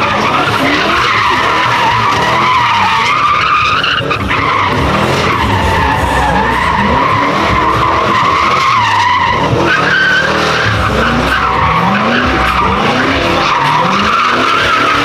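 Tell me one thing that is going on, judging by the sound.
A car engine roars and revs loudly, rising and falling again and again.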